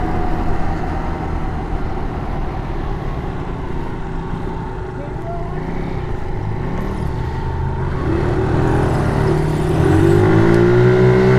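A scooter engine hums steadily up close and rises in pitch as it speeds up.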